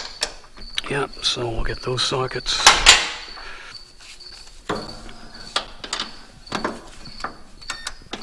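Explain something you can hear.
Plastic wire connectors click and rattle under a hand.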